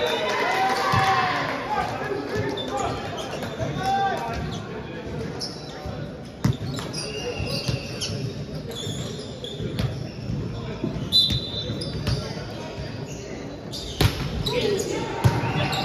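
A volleyball thumps as it is hit.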